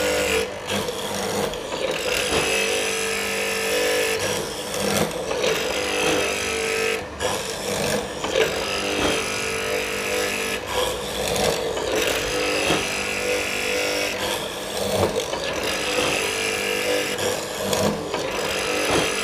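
A mortising machine's motor hums and whines steadily.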